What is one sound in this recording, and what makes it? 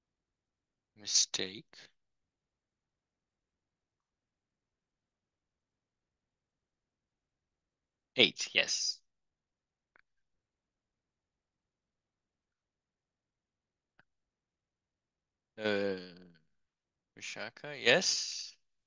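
A man speaks calmly in short bursts through a microphone, with pauses between.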